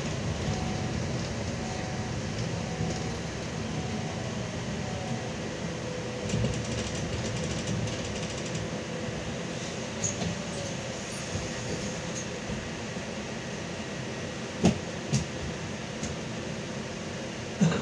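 Tyres crunch and hiss over a snowy road.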